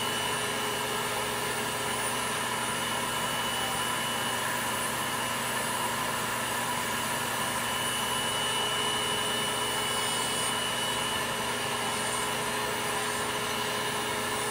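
An electric nail drill whirs with a steady high whine.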